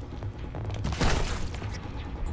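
An arrow is shot from a bow with a sharp twang.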